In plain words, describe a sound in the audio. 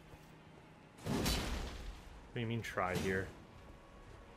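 A sword swings through the air with a whoosh.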